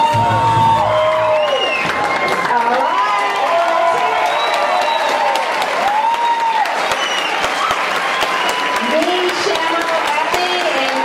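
A crowd cheers and whoops.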